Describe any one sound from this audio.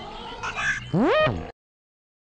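A quick rising electronic chime sounds.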